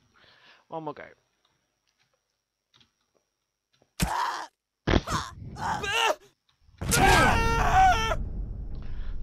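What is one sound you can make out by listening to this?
A young man talks and exclaims with animation into a close microphone.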